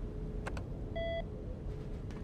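A short electronic beep sounds.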